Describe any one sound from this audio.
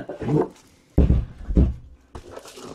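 A plastic device is set down with a dull thud.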